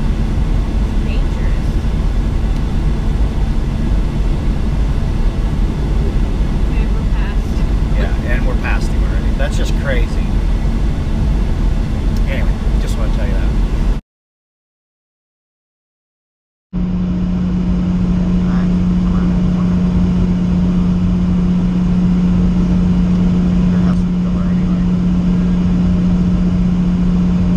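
A truck engine rumbles steadily inside the cab.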